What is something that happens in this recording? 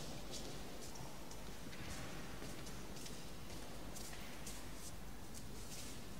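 Footsteps shuffle softly on a stone floor.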